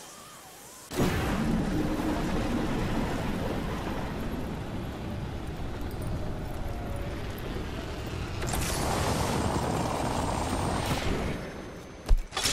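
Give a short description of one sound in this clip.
Wind rushes loudly past during a fall through the air.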